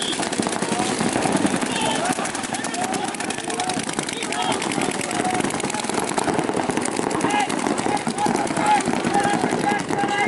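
Paintball markers fire in rapid bursts of sharp pops.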